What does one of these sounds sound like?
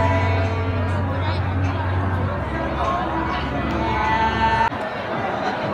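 A middle-aged woman sings close by.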